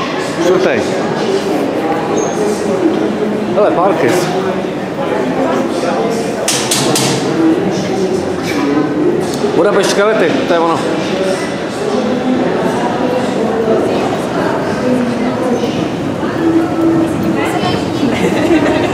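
Many people chatter nearby in a large echoing hall.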